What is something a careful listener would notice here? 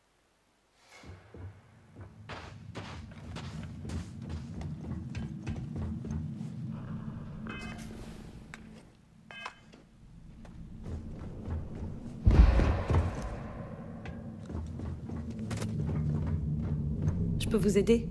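Footsteps crunch and clank on a hard floor.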